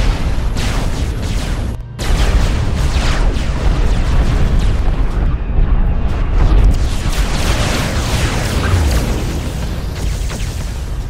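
Explosions rumble deeply.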